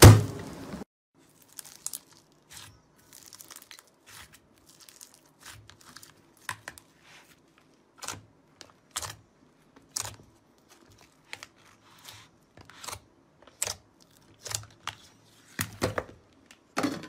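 Small air pockets pop sharply in slime.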